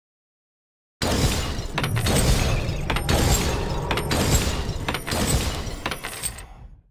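Blades clash and strike rapidly in a fight.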